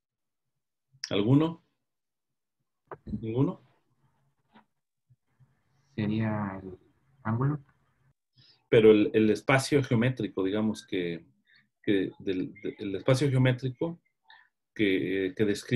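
A middle-aged man speaks calmly over an online call, pausing between phrases.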